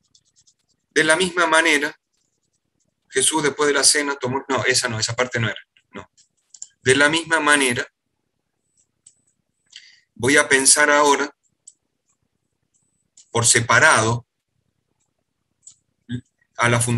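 A man talks calmly over an online call, in bursts with pauses.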